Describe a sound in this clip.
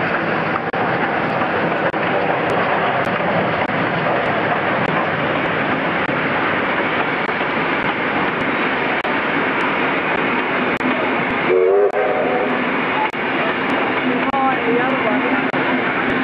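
Steel wheels clatter and squeal on the rails.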